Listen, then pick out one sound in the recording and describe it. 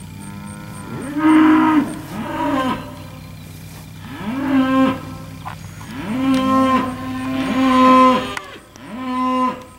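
Cattle moo loudly and repeatedly close by.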